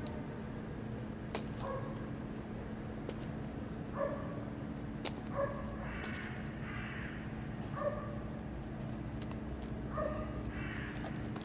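Footsteps walk slowly on a hard floor.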